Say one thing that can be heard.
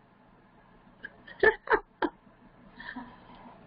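An elderly woman laughs close to a headset microphone.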